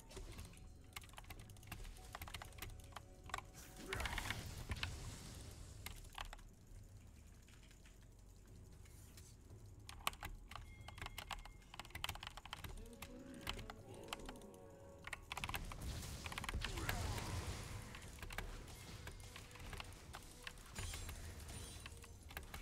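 Game sound effects of spells and hits burst out.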